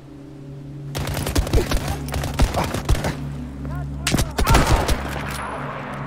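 Gunshots crack in quick bursts close by.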